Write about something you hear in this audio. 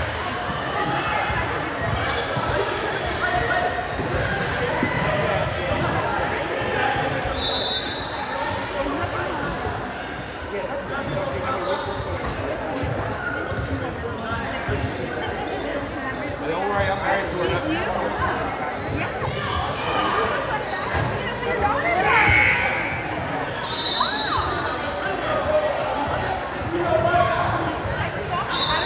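Many people chatter and call out in a large echoing hall.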